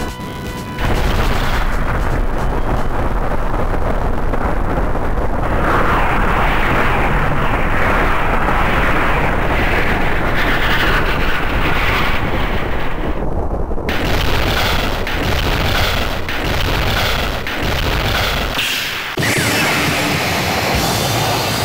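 Rocket engines roar loudly and steadily.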